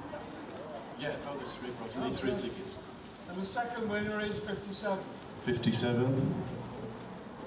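A man sings into a microphone, heard through loudspeakers.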